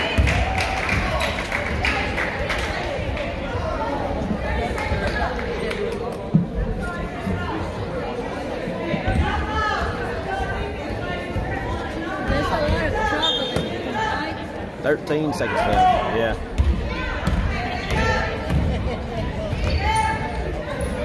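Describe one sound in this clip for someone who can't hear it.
A crowd of spectators cheers and chatters in a gym.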